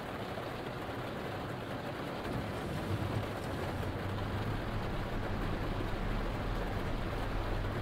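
Heavy rain patters steadily on a windscreen.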